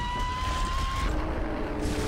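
A video game weapon fires a crackling energy blast.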